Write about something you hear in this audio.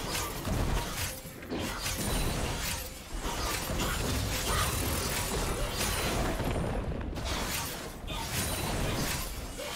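Magic spells crackle and burst in a fast video game fight.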